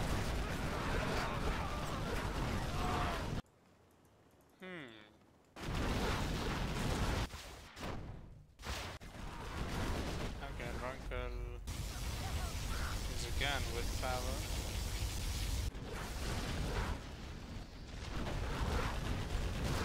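Heavy gunfire rattles.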